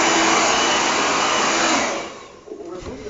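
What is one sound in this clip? A hair dryer blows with a loud rushing roar, then stops.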